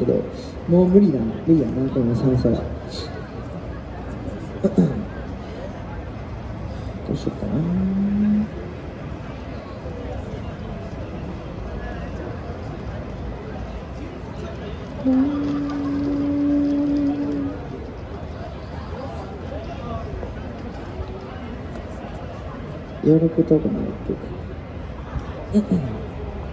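A young man sings through a loudspeaker outdoors, holding long notes between pauses.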